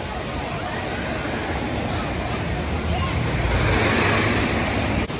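Water rushes down a chute and splashes into a pool.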